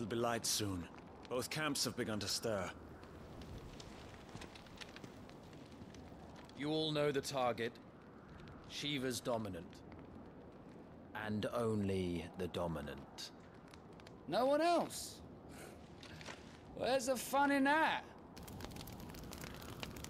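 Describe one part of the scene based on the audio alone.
A young man speaks into a close microphone.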